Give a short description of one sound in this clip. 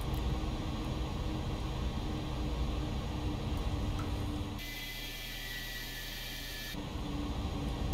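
A jet engine hums low and steady.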